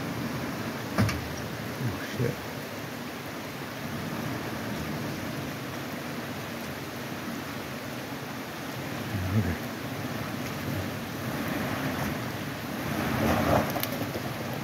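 Rocks knock and crunch under a vehicle's tyres.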